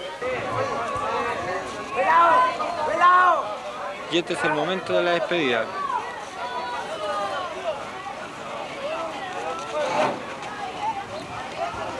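A crowd of young men and women chatter and call out nearby, outdoors.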